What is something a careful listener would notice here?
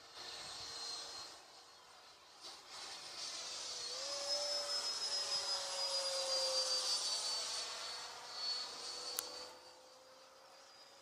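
A small propeller motor whines steadily, its pitch rising and falling.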